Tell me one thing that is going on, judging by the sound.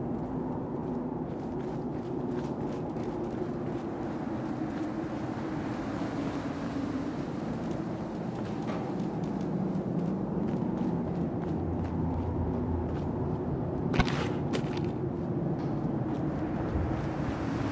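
Footsteps thud steadily on the ground.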